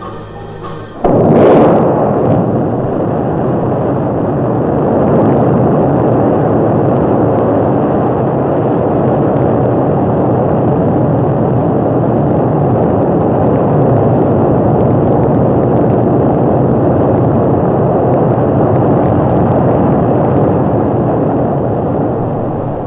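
A rocket engine ignites with a sudden blast and roars steadily in a deep rumble.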